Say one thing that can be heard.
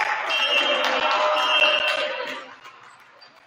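A group of young men cheer and shout loudly in an echoing gym.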